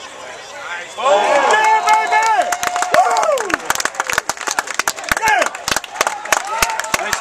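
Young men shout and cheer loudly close by, outdoors.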